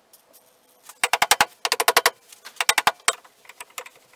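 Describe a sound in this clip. A hammer taps rapidly on metal.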